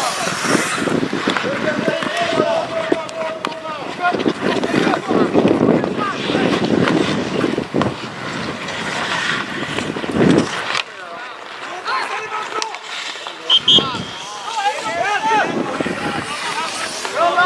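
Skates scrape and hiss on the ice.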